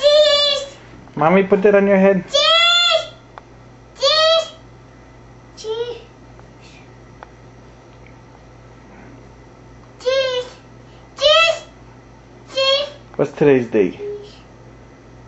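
A toddler squeals and babbles loudly close by, in high-pitched bursts.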